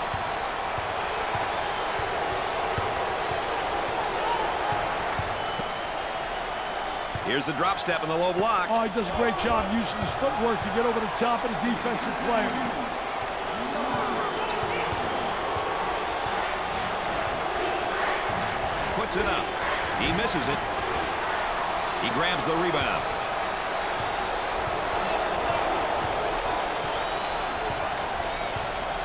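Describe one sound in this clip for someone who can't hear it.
A large crowd roars steadily.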